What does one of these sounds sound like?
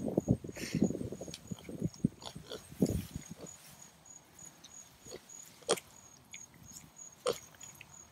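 A cow tears and munches grass close by.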